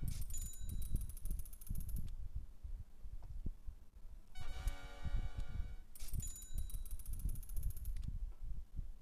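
Rapid clicking ticks speed along and then slow to a stop.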